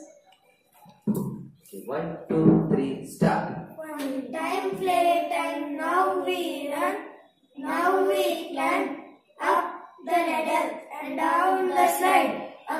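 A young boy recites in a melodic chant through a microphone.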